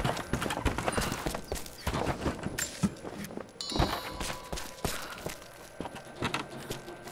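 Footsteps crunch and thud on snowy stairs.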